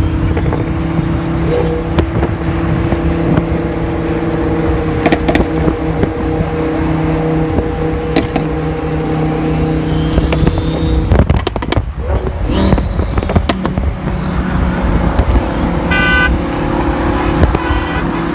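Wind and road noise rush past an open car window.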